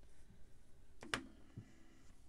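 A pen clicks against a table.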